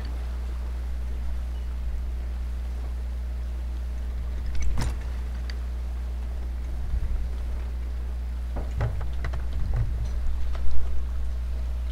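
Stormy sea waves wash against a wooden ship.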